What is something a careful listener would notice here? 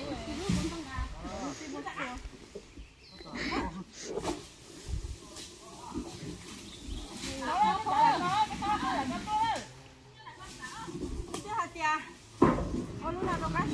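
Young women talk and call out to each other nearby, outdoors.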